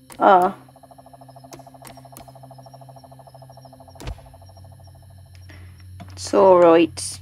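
A young woman speaks briefly and expressively into a microphone.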